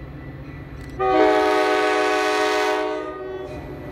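A train horn blares from a distance.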